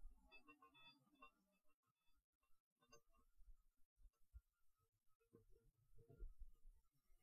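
Glass orbs rub and roll with a gentle scraping close to a microphone.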